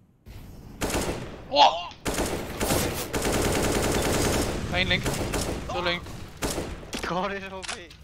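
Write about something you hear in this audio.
A rifle fires in quick bursts.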